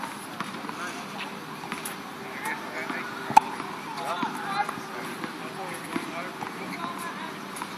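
Sneakers scuff on a hard court.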